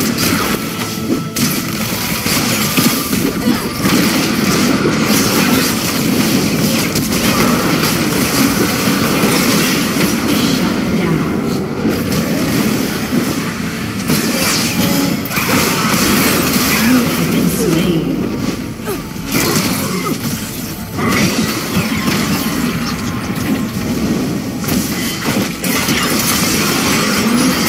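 Spells and weapons clash and crackle in a fast, noisy battle.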